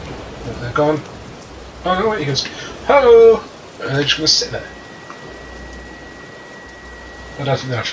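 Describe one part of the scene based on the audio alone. Waves churn and break on a stormy sea.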